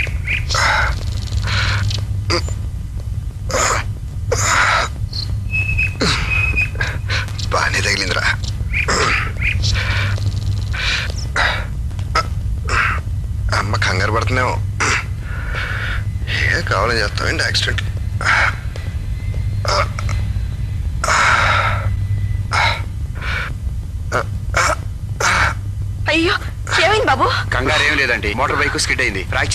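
A man speaks with emotion, close by.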